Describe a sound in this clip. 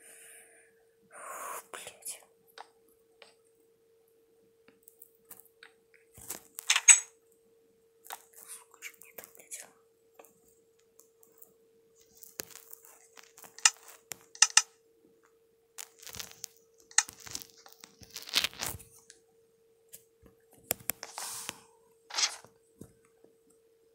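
Wooden blocks knock softly as they are placed one after another.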